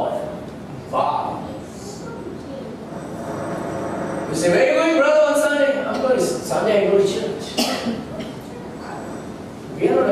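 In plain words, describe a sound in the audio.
A man speaks with animation into a microphone in a room with a slight echo.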